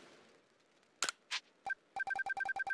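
Soft menu clicks sound.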